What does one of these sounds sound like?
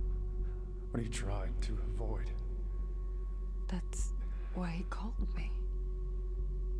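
A young woman speaks quietly and hesitantly.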